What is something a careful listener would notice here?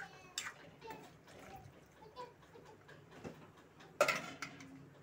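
A spoon scrapes and clinks against a metal pot.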